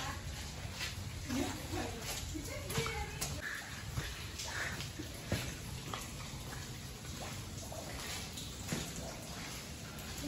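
Footsteps pad on wet stone.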